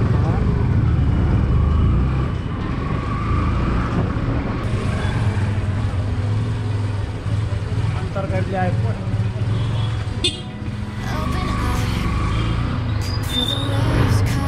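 A motorcycle engine idles and rumbles steadily close by.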